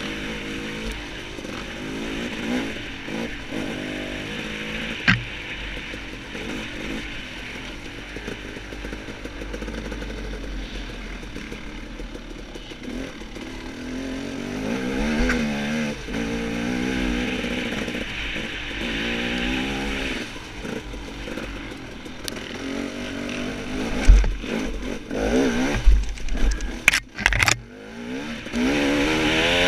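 A dirt bike engine revs and putters up close, rising and falling in pitch.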